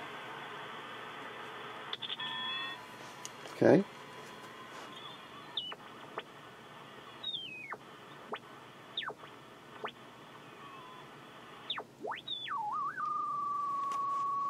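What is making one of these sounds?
A shortwave radio hisses with steady static.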